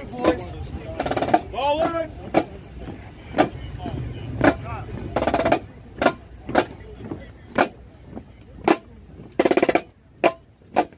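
A crowd of men chants loudly in unison outdoors.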